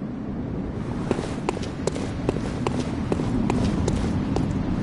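Footsteps tread quickly over stone.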